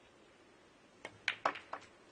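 A cue tip strikes a ball with a sharp tap.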